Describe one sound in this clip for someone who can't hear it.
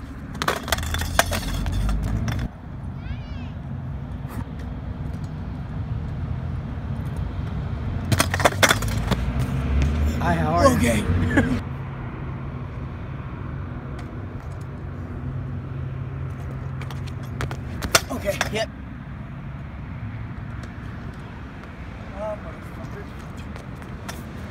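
Kick scooter wheels roll over concrete.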